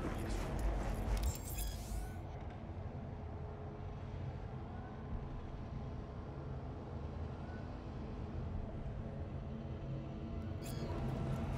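A low city hum drones steadily.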